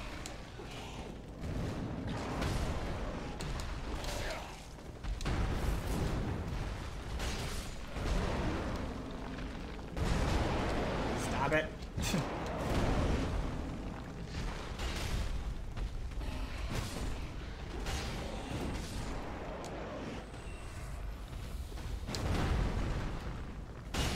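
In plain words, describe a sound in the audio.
Fire roars and crackles around a huge monster.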